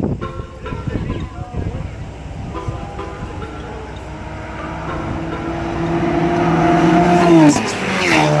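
A car engine roars louder as the car speeds closer.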